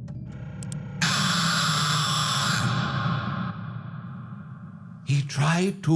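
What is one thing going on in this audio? An animatronic creature lets out a loud screeching scream.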